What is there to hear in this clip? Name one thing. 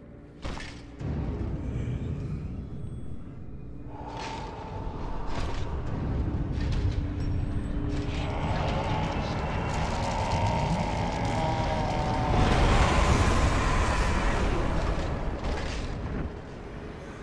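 A deep, rumbling whoosh of swirling dark energy swells and fades.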